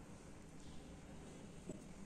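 Thick yogurt plops softly into a glass bowl.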